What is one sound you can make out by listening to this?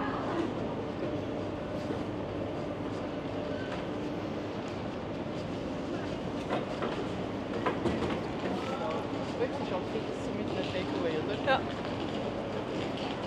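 Footsteps of passers-by patter on paving stones.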